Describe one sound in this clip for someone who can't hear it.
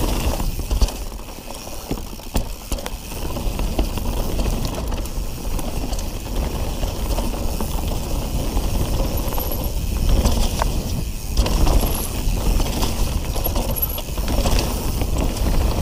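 Bicycle tyres roll and crunch over dry leaves and dirt.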